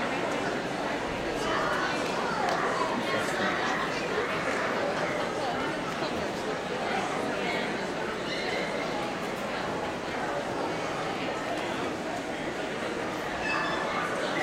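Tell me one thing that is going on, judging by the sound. A crowd of men and women chatters throughout a large echoing hall.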